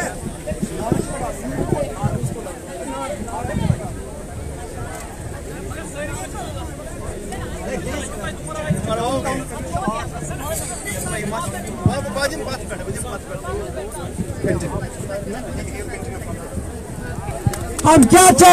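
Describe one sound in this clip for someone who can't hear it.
A crowd of men and women argue loudly and talk over one another close by.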